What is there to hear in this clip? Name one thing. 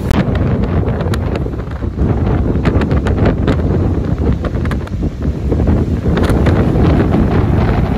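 Kite fabric flaps and rattles in the wind.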